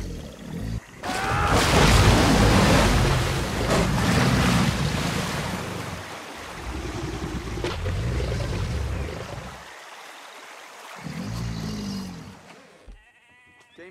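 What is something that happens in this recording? Water splashes and churns as an alligator swims.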